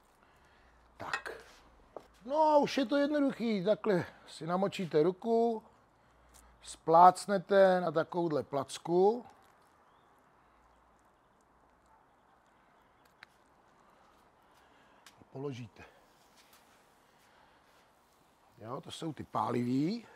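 A middle-aged man talks calmly and closely to a microphone.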